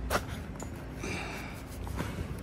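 A plastic tarp rustles as a hand brushes against it.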